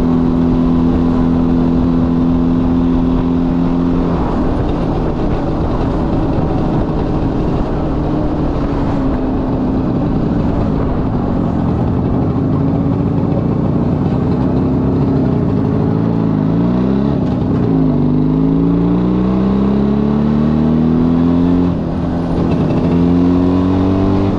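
Wind rushes past loudly as the motorcycle rides along.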